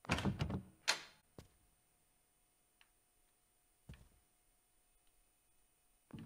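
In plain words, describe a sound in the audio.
A wooden door clicks open.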